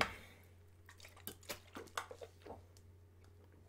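A young man gulps water from a plastic bottle.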